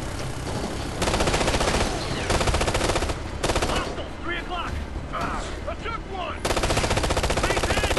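Rifle fire crackles in rapid bursts.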